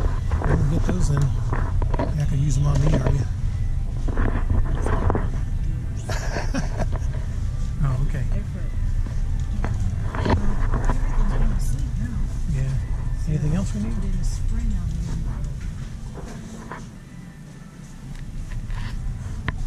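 A shopping cart rattles as it rolls over a hard floor.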